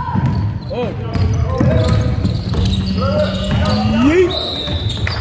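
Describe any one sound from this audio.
A basketball thumps as it bounces.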